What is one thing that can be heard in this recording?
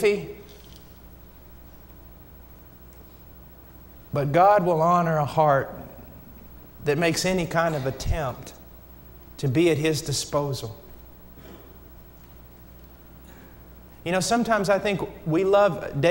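A man speaks slowly and deliberately through a microphone in a large hall, with long pauses between phrases.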